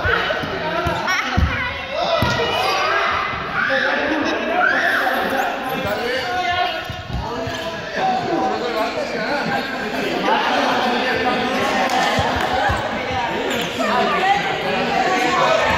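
Children and teenagers shout and laugh excitedly in a large echoing hall.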